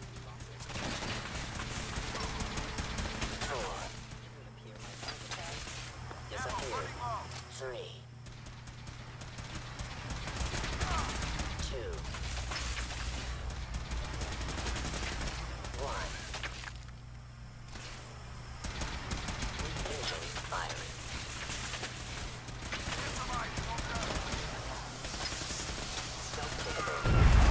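Laser weapons fire in rapid zapping bursts.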